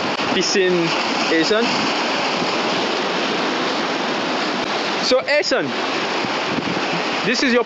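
Sea waves wash and splash against rocks nearby.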